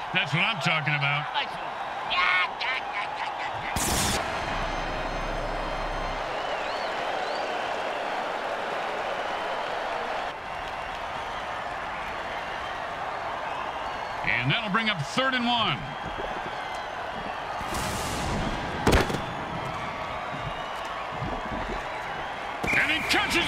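A large crowd cheers and roars steadily in a big stadium.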